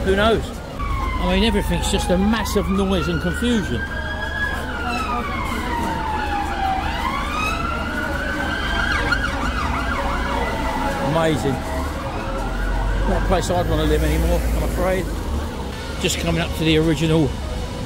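People chatter nearby.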